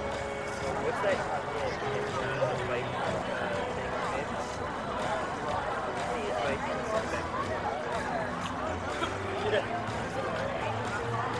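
A crowd of men and women chatters at a distance outdoors.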